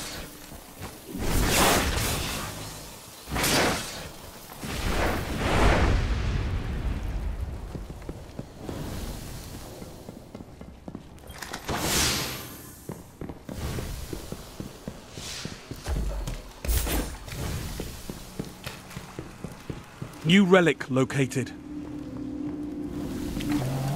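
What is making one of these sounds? Footsteps patter quickly as a character runs.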